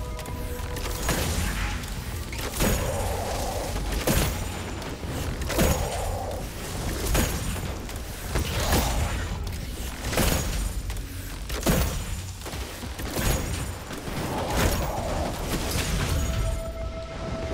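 Explosions crackle on impact.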